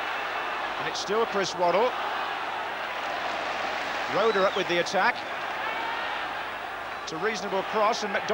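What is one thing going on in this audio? A large stadium crowd roars and chants steadily.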